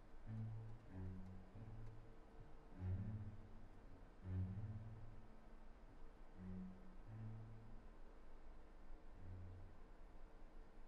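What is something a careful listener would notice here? A cello plays slow, deep bowed notes.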